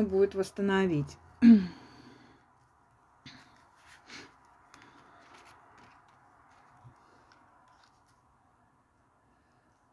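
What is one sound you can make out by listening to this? Cards slide softly across a cloth-covered table.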